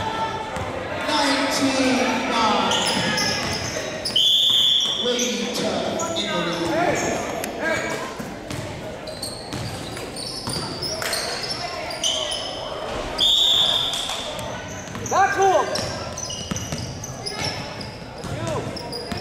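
Young players shout and call out in a large echoing gym.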